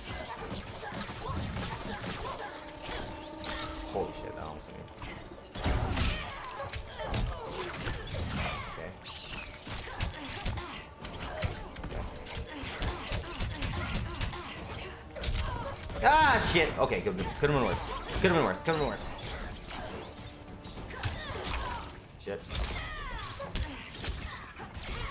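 Icy blasts whoosh.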